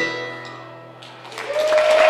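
A mandolin rings out on a final chord and fades.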